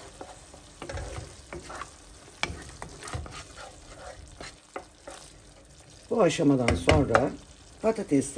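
A wooden spoon scrapes and stirs thick sauce in a pot.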